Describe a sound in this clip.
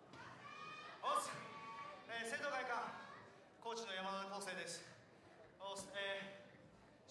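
A young man speaks with animation into a microphone, heard through loudspeakers in a large echoing hall.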